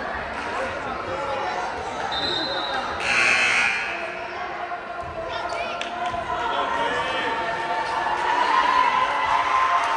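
A volleyball is hit with sharp smacks.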